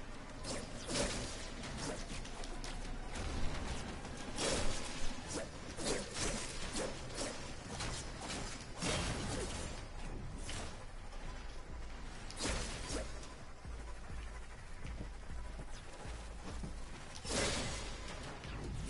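Explosions boom now and then.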